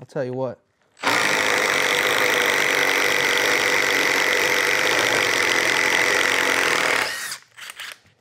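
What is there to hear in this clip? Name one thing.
A power drill whirs steadily as it bores into wood.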